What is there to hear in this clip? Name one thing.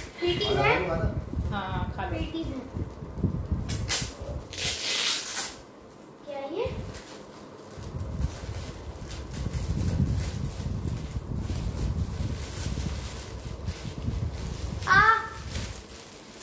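A young girl speaks excitedly close by.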